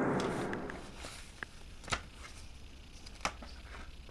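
Paper rustles in a hand nearby.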